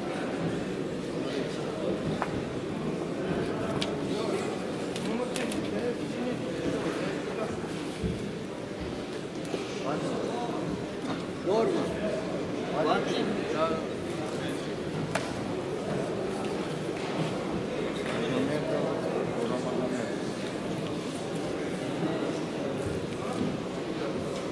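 A crowd of young men murmurs and talks in a large echoing hall.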